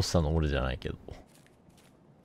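A young man speaks briefly into a nearby microphone.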